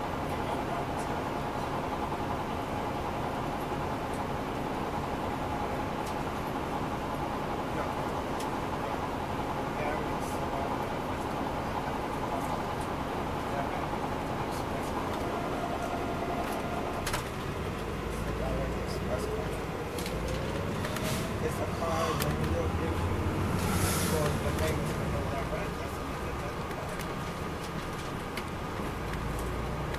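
Tyres roll on the road beneath a coach.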